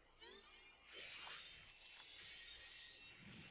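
An ice spell crackles and shatters.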